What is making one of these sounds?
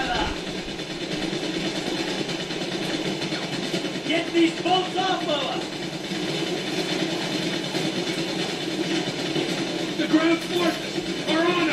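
Water rushes and splashes against a moving boat.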